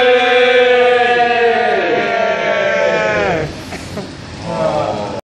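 A group of men join in the chant.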